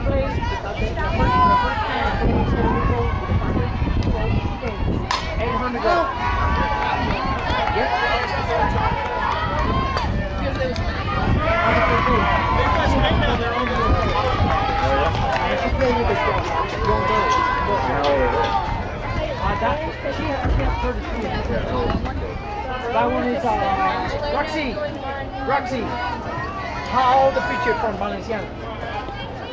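Young girls call out and cheer outdoors.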